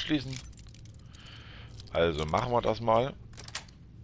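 A lock clicks and scrapes as it is picked.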